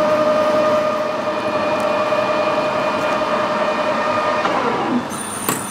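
A metal lathe spins with a steady, high whine.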